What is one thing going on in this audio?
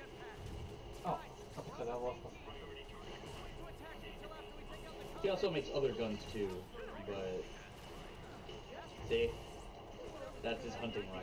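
Young adults talk together close to a microphone.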